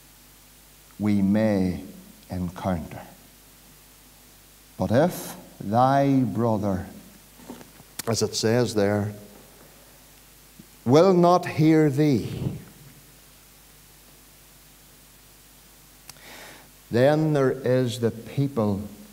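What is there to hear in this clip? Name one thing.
A middle-aged man speaks with emphasis into a microphone, in bursts with pauses, in an echoing hall.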